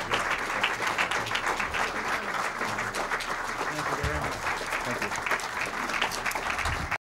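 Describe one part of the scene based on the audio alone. A crowd applauds loudly in a room.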